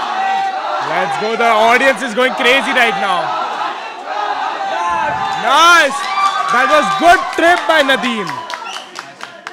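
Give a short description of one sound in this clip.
A crowd shouts and cheers around a fight.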